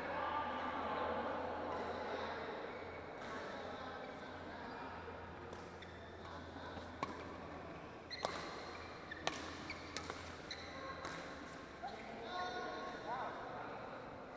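Shuttlecocks are struck sharply with rackets in a large echoing hall.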